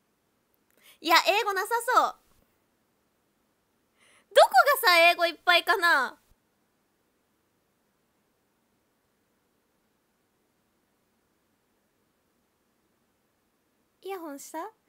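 A young woman speaks brightly and cheerfully close to a microphone, in short bursts with pauses.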